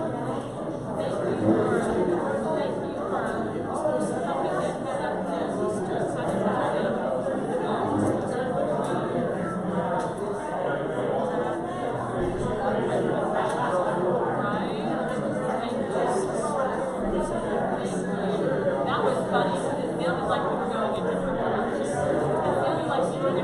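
A crowd of adults chatters and talks at once in a room.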